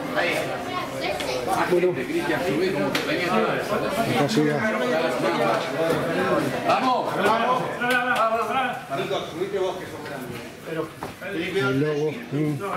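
Several men talk and call out to each other nearby, in an echoing space.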